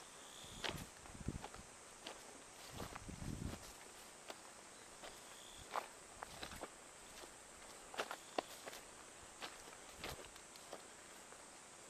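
Footsteps crunch on gravel and dry leaves.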